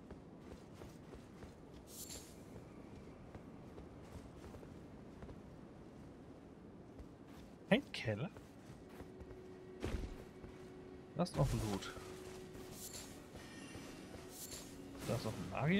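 Footsteps crunch over stone and grass.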